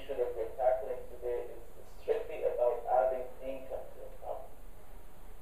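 A man speaks calmly through a loudspeaker.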